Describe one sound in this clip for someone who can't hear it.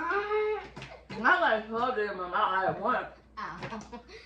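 A young girl laughs.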